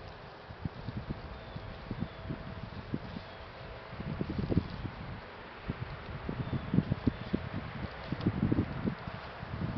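A wooden boat scrapes and knocks against its wooden cradle as it is pushed.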